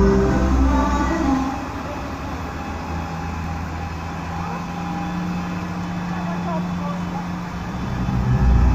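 Tyres hiss on wet pavement.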